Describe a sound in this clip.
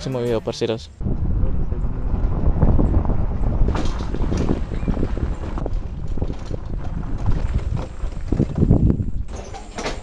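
A motorcycle engine rumbles while riding along a rough road.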